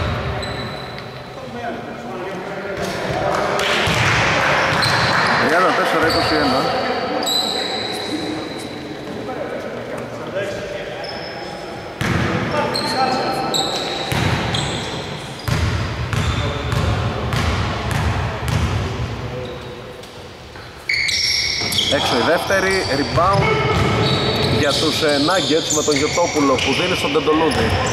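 A basketball bounces on the court with hollow thuds.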